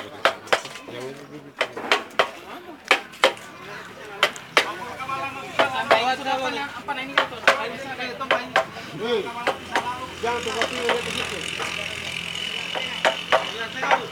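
A hammer bangs on wood in sharp, repeated blows.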